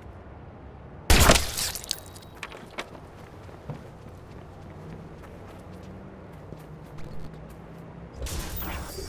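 Footsteps crunch softly over grass and pavement.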